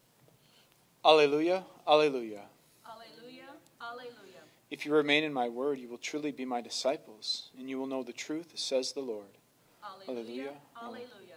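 A man speaks calmly and clearly into a microphone in an echoing room.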